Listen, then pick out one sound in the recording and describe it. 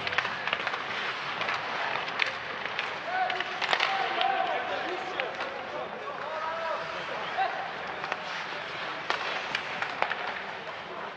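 Hockey sticks click against the puck and each other.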